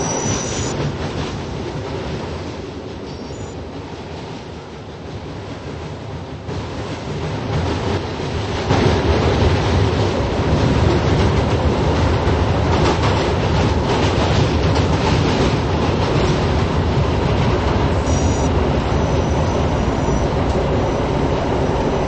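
A subway train rumbles loudly along the tracks through a tunnel.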